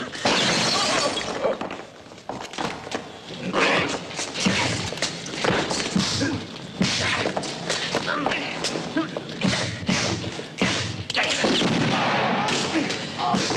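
A man cries out in pain.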